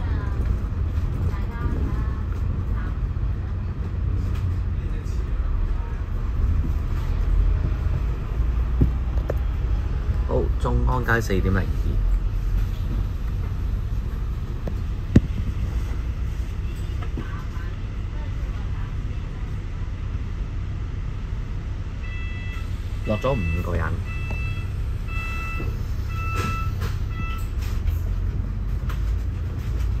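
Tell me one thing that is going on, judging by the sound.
A bus engine rumbles steadily nearby.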